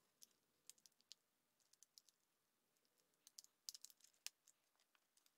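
Plastic packaging clicks and crackles as hands open it.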